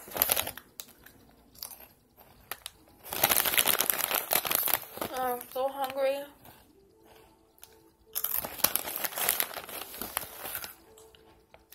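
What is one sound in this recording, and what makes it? A young woman crunches on crisp chips close by.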